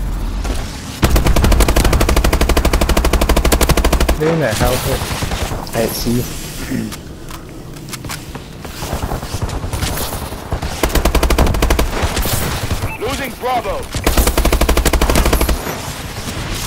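A rapid-fire gun shoots in loud, fast bursts.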